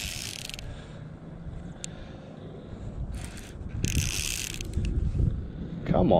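Water laps gently against a kayak's hull.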